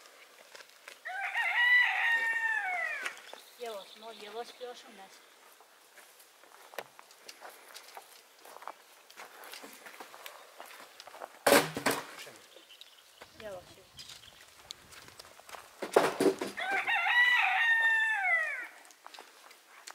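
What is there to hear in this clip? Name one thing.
A rooster crows nearby.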